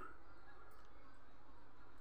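A spoon scrapes food onto a plate.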